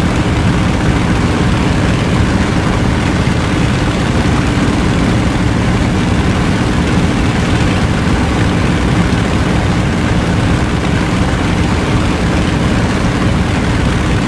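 Wind rushes past an aircraft cockpit.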